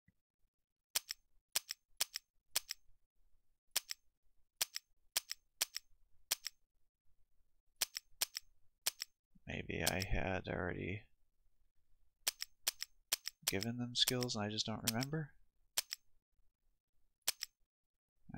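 Game menu buttons click sharply, one after another.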